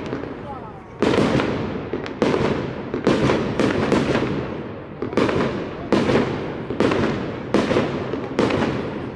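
Fireworks burst with loud booming bangs that echo off buildings.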